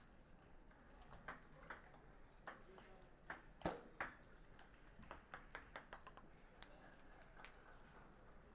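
A ping pong ball clicks back and forth off paddles and a table in a quick rally.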